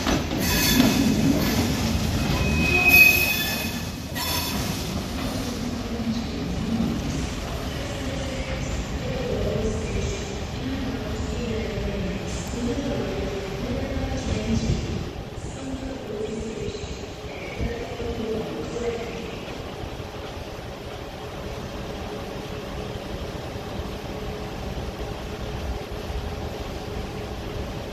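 A train rumbles along the tracks and fades into the distance.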